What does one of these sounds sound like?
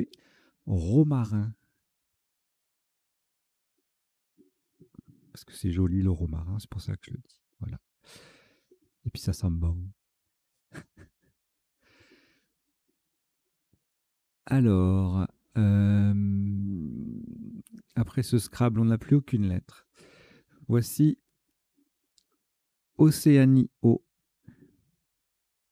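A man speaks calmly into a microphone, in bursts with pauses.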